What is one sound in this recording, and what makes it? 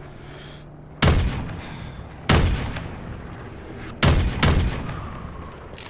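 A rifle fires several loud, echoing shots.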